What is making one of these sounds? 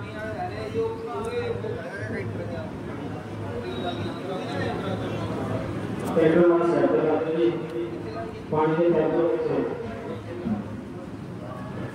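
An elderly man speaks with animation into a microphone over a loudspeaker.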